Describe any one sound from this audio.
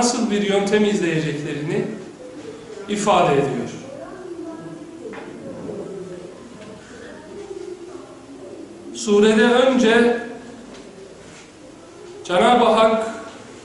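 A man speaks calmly into a microphone, heard close up in a room with some echo.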